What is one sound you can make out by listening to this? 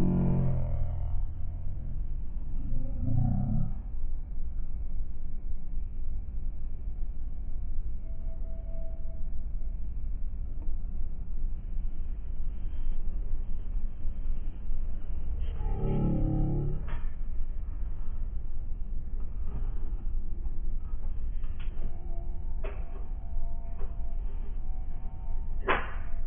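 Traffic rumbles steadily nearby, outdoors.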